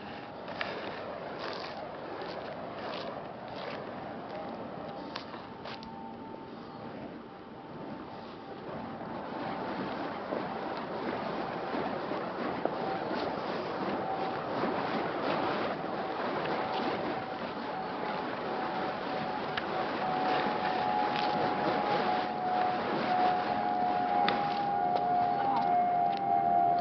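Burning torches whoosh as they swing through the air.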